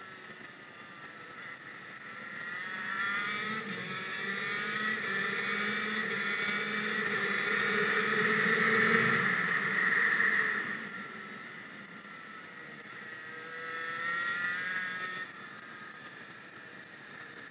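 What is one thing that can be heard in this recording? A kart engine whines, rising in pitch as it speeds up and dropping as it slows for the bends.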